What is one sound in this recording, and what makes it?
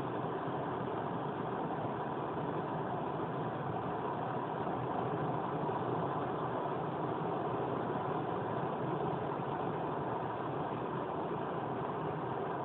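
Tyres roar steadily on an asphalt road.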